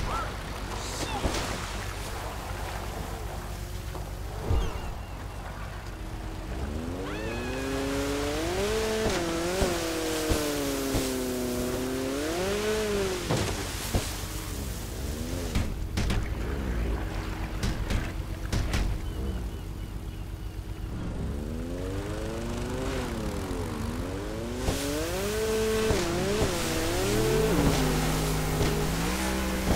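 Water splashes and churns.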